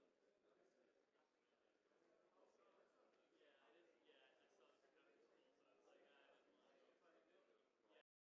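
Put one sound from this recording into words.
Young men chat and murmur in a room, heard through a microphone.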